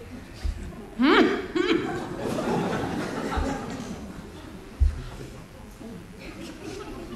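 A man plays a harmonica.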